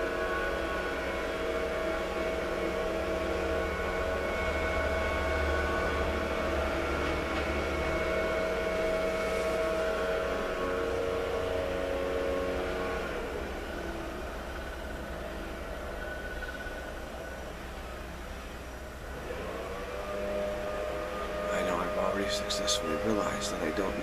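A man chants in a long, steady, droning tone close by.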